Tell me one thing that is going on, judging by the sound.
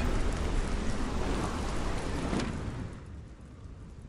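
Ocean waves wash and roar steadily, then fade away.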